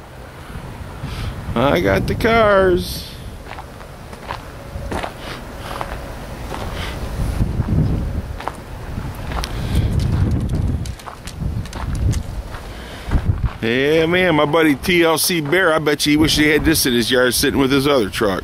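Wind gusts and rumbles outdoors.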